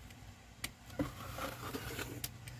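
A pen scratches lightly across fabric.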